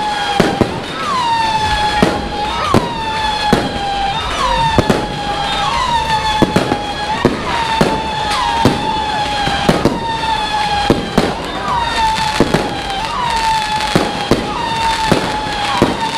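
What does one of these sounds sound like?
Firework rockets whistle as they shoot up, one after another.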